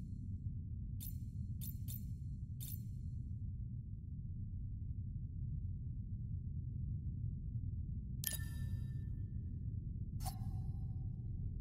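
Short electronic clicks sound as menu options change.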